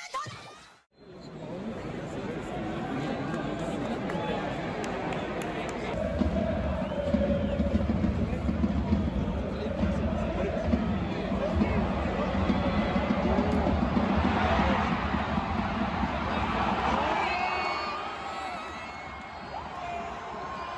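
A large stadium crowd roars and chants loudly in the open air.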